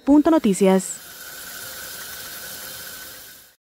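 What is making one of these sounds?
Water gushes out of a pipe in a strong spray.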